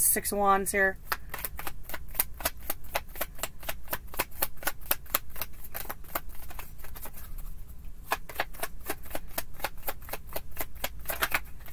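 Playing cards are shuffled with quick, rapid flicks.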